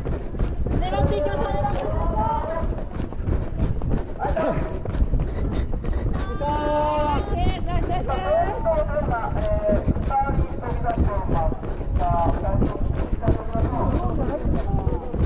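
Running footsteps slap steadily on a track.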